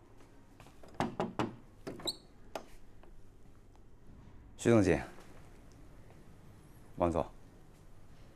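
A middle-aged man speaks in short, calm phrases nearby.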